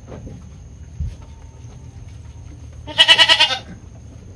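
A goat munches dry feed.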